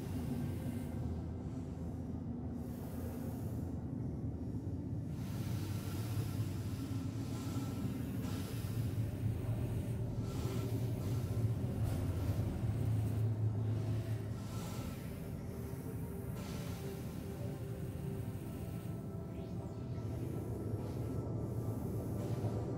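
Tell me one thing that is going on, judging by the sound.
A spacecraft engine hums low and steadily.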